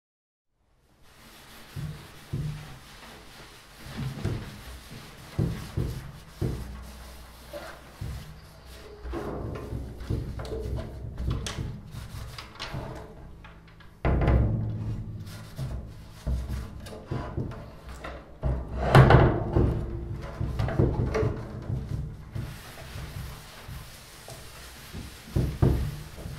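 A large drum booms with deep thumps under hand strikes.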